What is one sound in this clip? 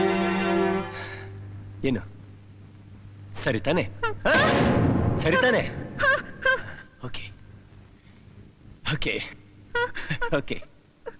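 A young man speaks playfully and close by.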